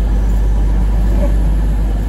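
A suitcase's wheels rumble along the ground.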